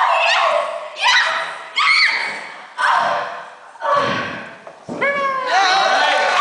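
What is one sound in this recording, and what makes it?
A young girl sings into a microphone, heard through loudspeakers in a large hall.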